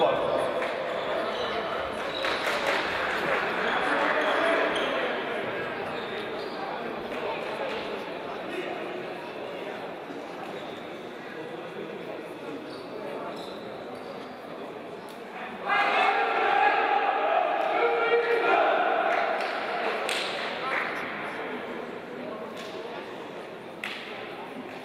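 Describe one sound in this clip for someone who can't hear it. A crowd of men chatters and calls out in a large echoing hall.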